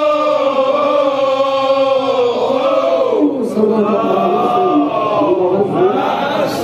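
A man sings loudly in long, wavering notes.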